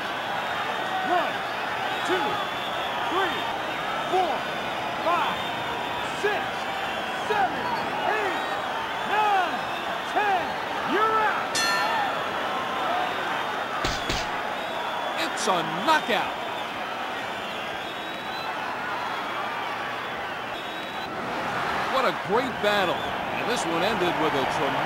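A crowd roars steadily in a large arena.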